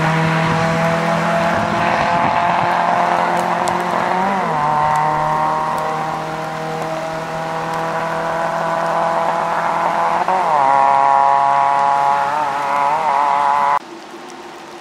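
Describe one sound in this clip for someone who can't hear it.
A rally car engine revs hard and shifts gears as it drives away.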